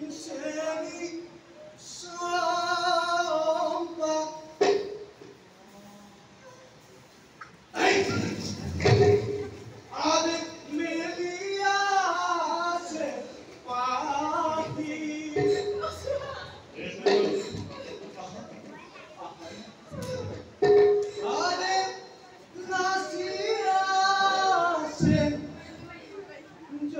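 A man sings loudly through a microphone in a large echoing hall.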